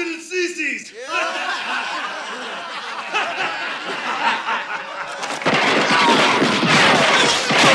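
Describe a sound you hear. A crowd of men laughs loudly.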